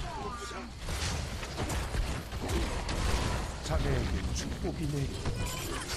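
Magic blasts crackle and whoosh during a video game battle.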